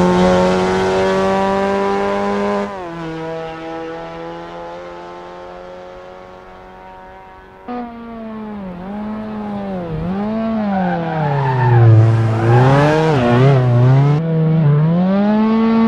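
A car engine drones steadily, then revs up and down with shifting pitch.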